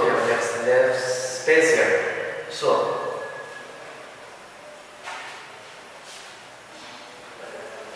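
A duster rubs across a chalkboard.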